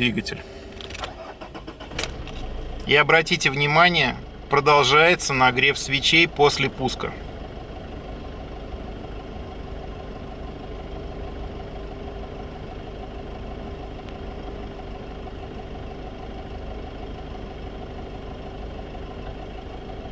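A car engine starts and settles into a steady low idle.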